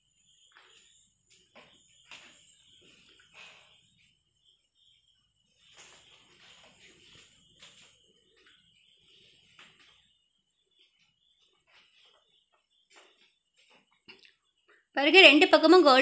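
Hot oil sizzles and bubbles steadily.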